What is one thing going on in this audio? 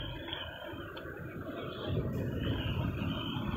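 A car drives slowly past.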